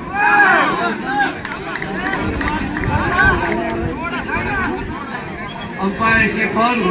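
Young men on a court call out to each other loudly.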